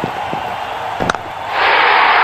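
A cricket bat strikes a ball with a sharp knock.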